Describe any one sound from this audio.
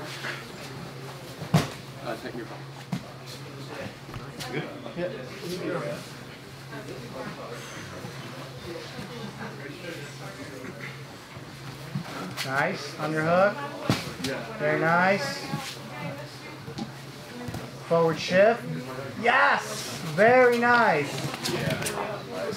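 Bodies thump and shuffle on a padded mat.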